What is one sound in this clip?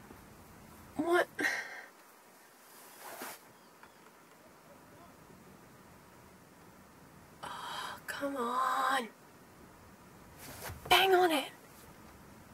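A young woman speaks close by in short, animated bursts.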